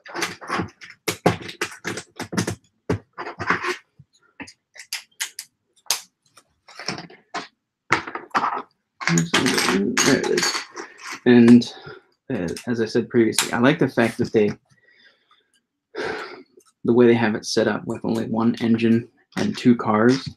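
Plastic parts click and rattle in a man's hands.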